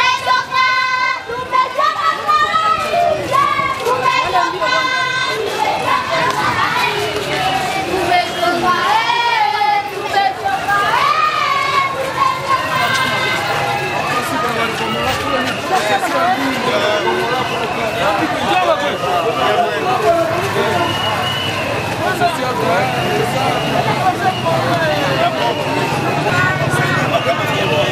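A large crowd sings and chants loudly outdoors.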